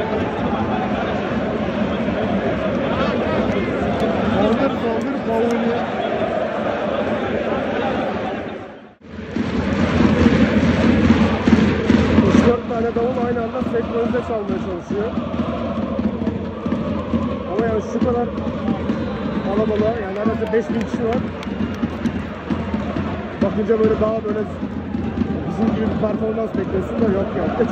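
A large stadium crowd chants and sings loudly, echoing under the roof.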